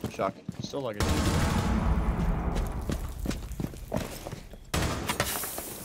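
Glass shatters and shards clatter to the floor.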